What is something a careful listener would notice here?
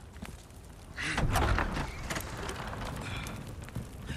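A heavy wooden door creaks and scrapes open.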